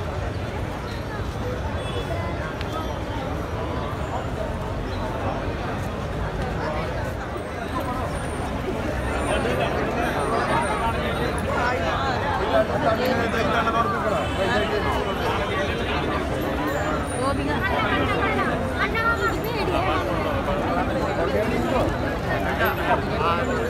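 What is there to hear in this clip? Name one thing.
A large outdoor crowd murmurs and chatters nearby.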